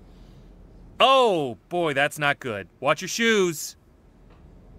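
A man speaks loudly and with animation into a close microphone.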